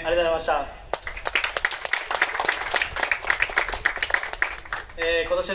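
A crowd of spectators claps outdoors.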